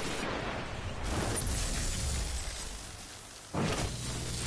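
An explosion booms with a loud rushing blast.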